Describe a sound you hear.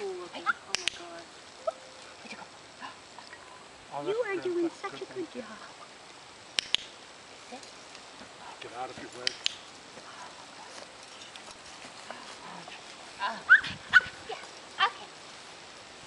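A woman talks to a dog in a high, coaxing voice nearby.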